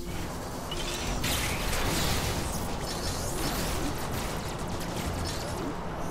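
Sci-fi blaster shots fire in quick bursts.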